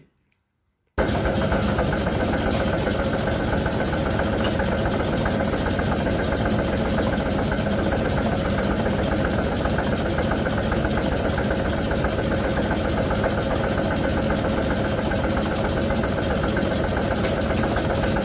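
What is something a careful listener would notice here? A power hammer pounds rapidly and loudly on metal.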